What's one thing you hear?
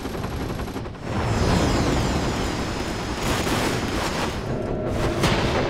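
A helicopter's rotor whirs and thumps.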